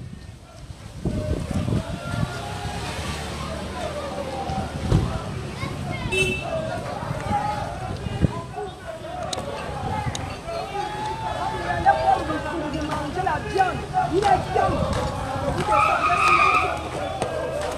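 A crowd of men and women talks and shouts outdoors in the street.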